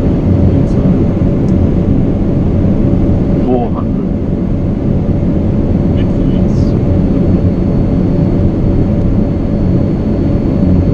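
Aircraft engines roar steadily with a loud rushing of air.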